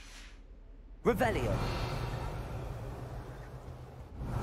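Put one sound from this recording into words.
A magic spell whooshes and swirls with a shimmering rush.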